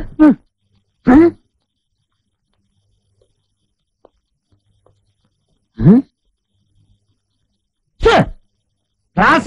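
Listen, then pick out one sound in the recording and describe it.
A middle-aged man calls out in short bursts.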